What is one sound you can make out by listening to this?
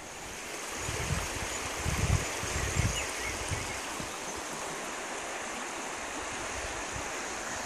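A river rushes over stones.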